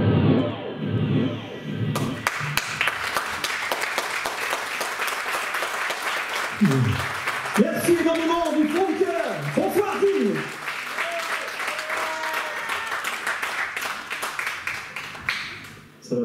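A live band plays in a large hall.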